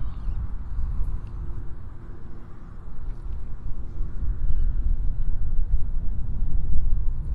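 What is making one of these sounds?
Wind blows hard across open water, rumbling into the microphone.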